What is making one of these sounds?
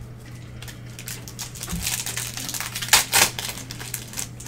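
Foil wrapping crinkles as a pack is torn open.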